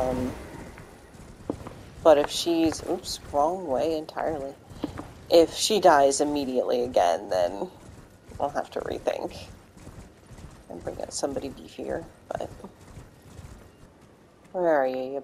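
A horse gallops over grassy ground.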